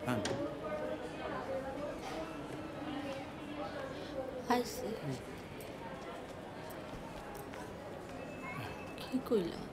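A middle-aged man speaks in a low voice.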